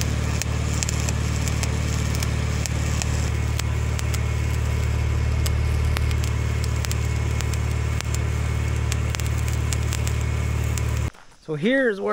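An electric welder buzzes and crackles steadily.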